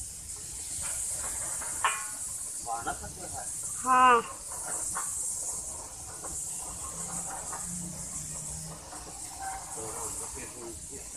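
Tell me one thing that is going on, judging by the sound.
A young man speaks nearby over the machine noise.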